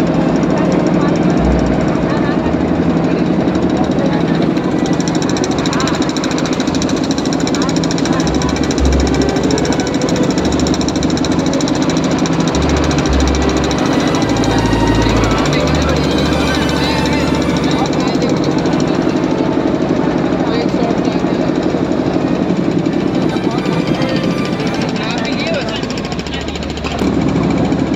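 A boat engine hums steadily close by.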